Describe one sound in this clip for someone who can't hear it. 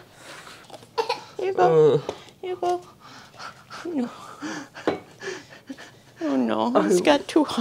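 A toddler cries and wails.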